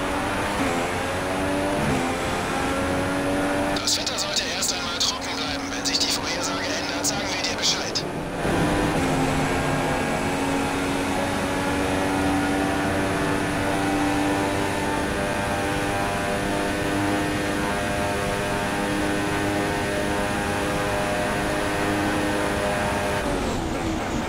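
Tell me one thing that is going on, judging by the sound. A Formula One car engine screams at high revs, shifting up through the gears.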